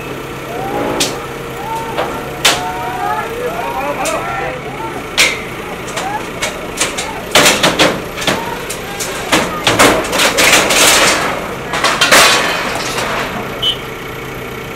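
Metal crashes and bangs as a digger bucket tears at a building front.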